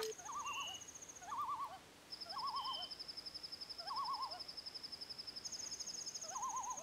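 A video game plays a warbling electronic chirp over and over.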